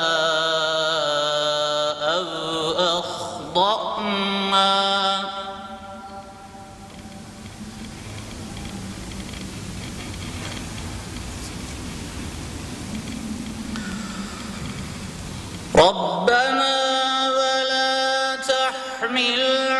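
A man chants a recitation in a melodic voice into a microphone.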